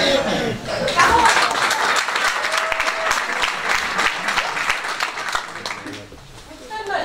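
An audience laughs.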